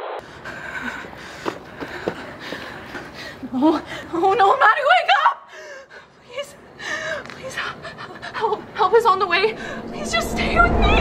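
A young woman speaks anxiously and urgently up close.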